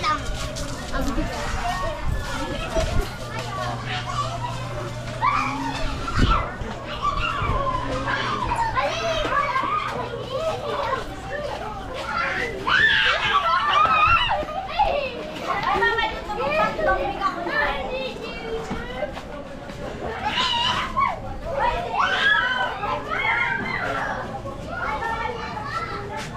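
Men and women chatter nearby in a busy outdoor lane.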